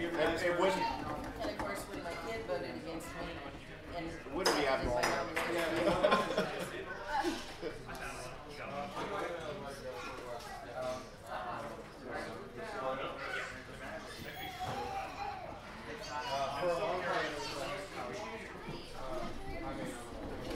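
A man speaks to a group with animation.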